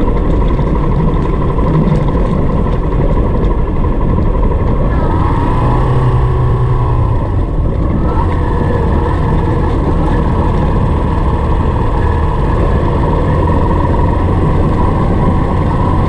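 Tyres crunch and rumble over a rough gravel road.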